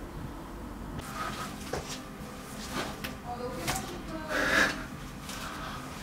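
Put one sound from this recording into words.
A young man speaks through a face mask, close by.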